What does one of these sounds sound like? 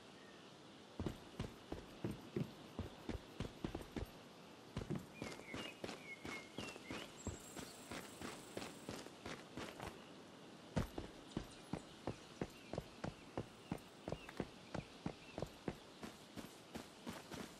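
Footsteps run quickly over grass and soft ground.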